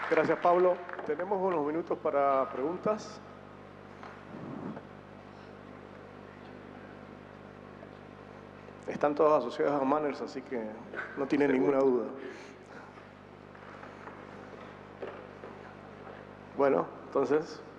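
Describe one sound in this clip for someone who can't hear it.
A man speaks into a microphone, heard over loudspeakers in a large hall.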